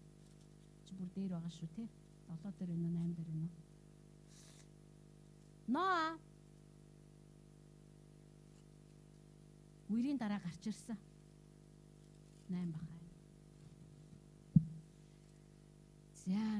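A middle-aged woman speaks slowly into a microphone, with long pauses, heard through a loudspeaker.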